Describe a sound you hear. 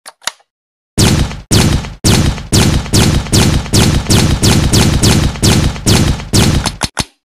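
A toy blaster fires a rapid burst of shots.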